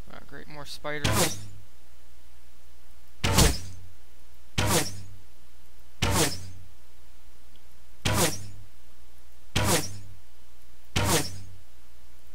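A bow snaps as arrows are shot, again and again at a steady pace.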